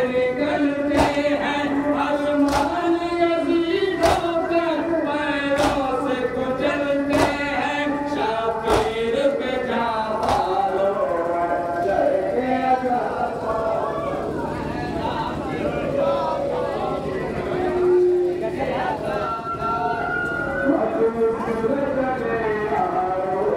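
A crowd of men chants loudly in unison outdoors.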